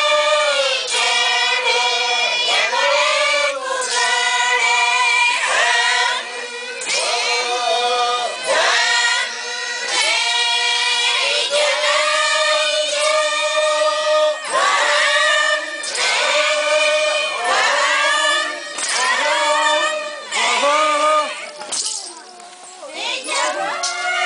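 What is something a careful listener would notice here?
A group of women sing together in loud, rhythmic chanting bursts, close by and outdoors.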